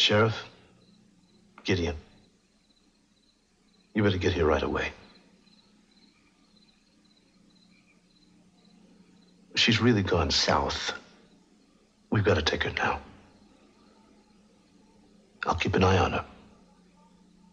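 A man speaks in short, tense bursts on the phone, with long pauses between.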